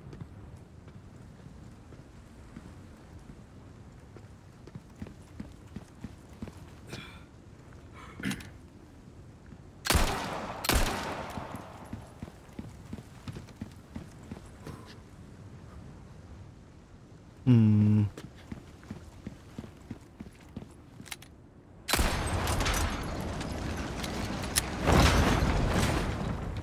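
Footsteps scrape on stone.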